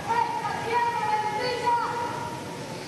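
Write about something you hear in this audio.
A woman calls out loudly on a stage.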